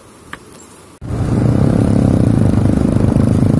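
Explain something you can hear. A motorbike engine rumbles nearby.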